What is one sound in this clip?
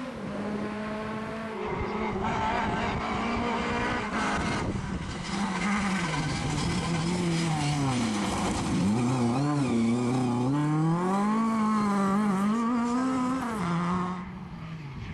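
A rally car engine roars and revs up and down as the car speeds past.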